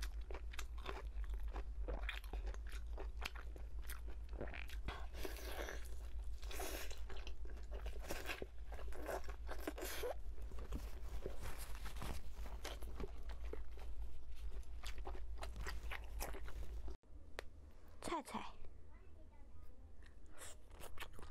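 A young woman chews and bites crunchy food close to a microphone.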